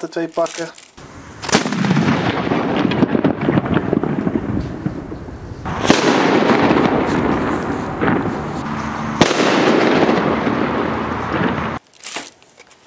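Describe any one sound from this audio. A smoke firework hisses and roars steadily.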